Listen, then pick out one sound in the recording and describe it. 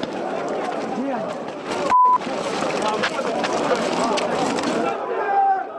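A crowd of men shout and yell all around, outdoors.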